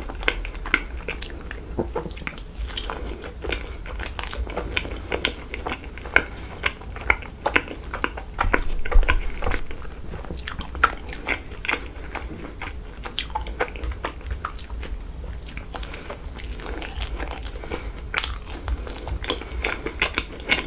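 A young man chews soft, sticky food close to a microphone, with wet smacking sounds.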